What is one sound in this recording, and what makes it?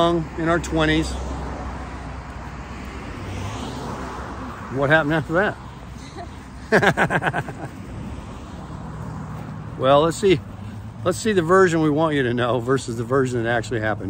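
A middle-aged man talks casually, close by, outdoors.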